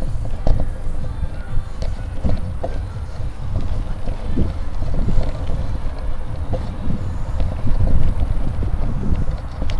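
Tyres rumble and crunch over a gravel path.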